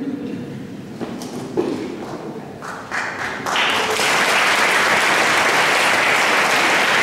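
An audience applauds, swelling into steady clapping.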